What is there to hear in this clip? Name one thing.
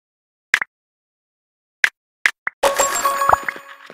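Game menu clicks chime sharply.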